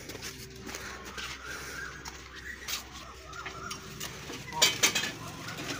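Metal rods clank and rattle against each other.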